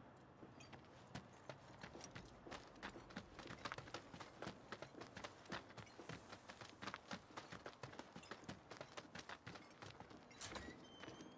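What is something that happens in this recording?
Footsteps run quickly over gravel.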